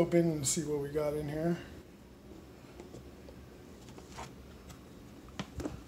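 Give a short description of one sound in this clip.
A plastic lid clicks and scrapes open.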